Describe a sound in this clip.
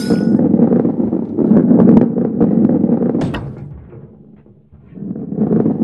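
A heavy ball rolls and rumbles along a wooden track.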